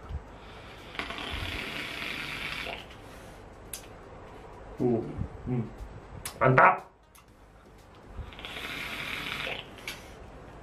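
A vape device hisses and crackles as a man inhales through it.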